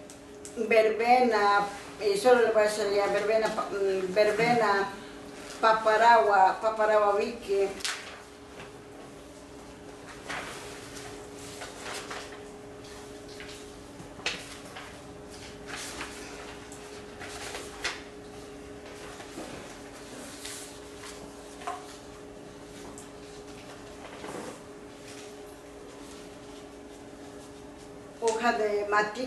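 A man speaks calmly, heard through an online call, with long pauses.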